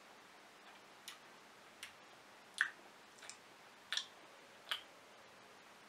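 A man smacks his lips softly while tasting.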